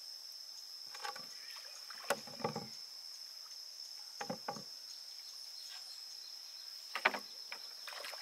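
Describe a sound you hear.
A wooden pole knocks against the side of a boat.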